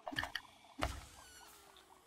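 A blade slashes and strikes with a sharp burst of impact.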